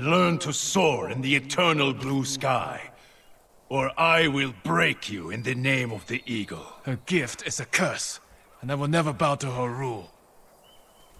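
A man speaks in a deep, stern voice, close by.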